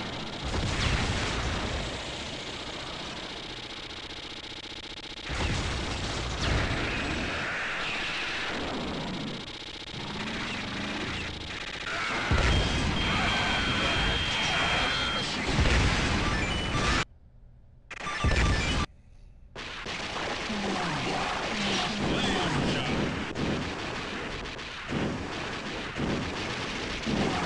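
Arcade game machine guns rattle rapidly.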